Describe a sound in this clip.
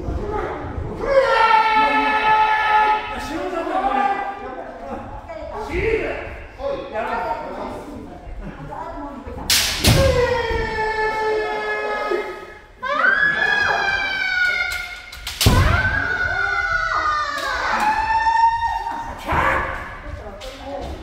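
Young men shout loud, drawn-out cries in a large echoing hall.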